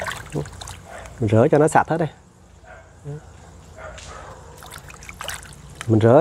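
Water splashes softly in a bucket.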